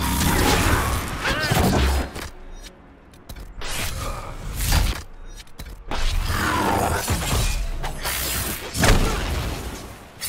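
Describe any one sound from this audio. Magic blasts crackle and explode in loud bursts.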